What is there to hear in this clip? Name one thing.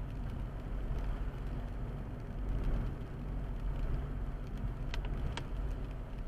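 A car engine rumbles low and steady from inside while driving.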